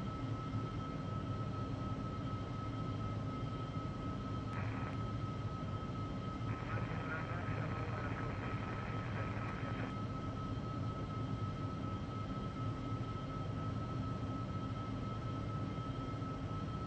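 Jet engines roar in a steady, low drone.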